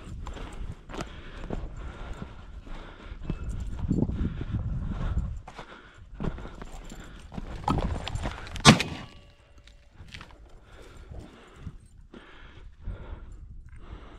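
Footsteps crunch and brush through dry shrubs.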